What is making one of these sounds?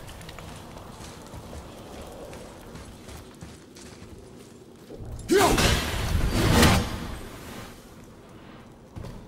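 Heavy footsteps crunch over snow and stone.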